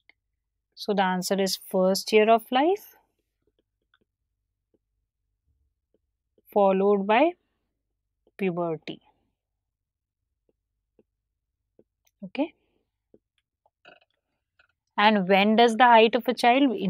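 A woman speaks calmly into a close microphone, in short bursts with pauses.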